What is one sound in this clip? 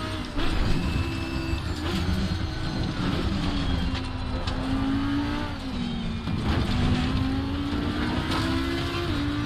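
A racing car engine roars and shifts through its gears.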